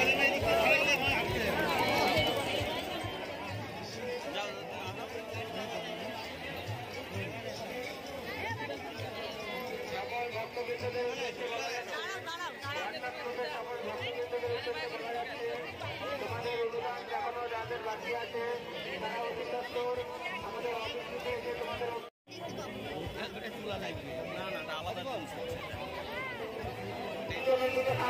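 Many voices of men and women shout loudly together.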